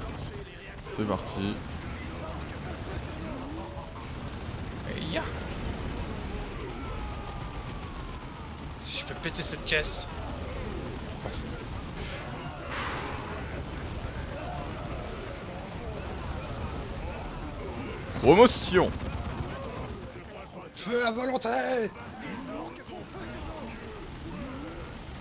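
Gunfire and explosions crackle in a battle.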